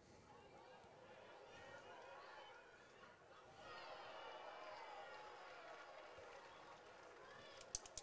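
A crowd of spectators cheers and chatters in a large open stadium.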